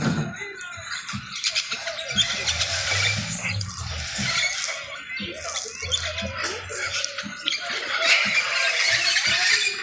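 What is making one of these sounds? Leaves rustle in a light breeze.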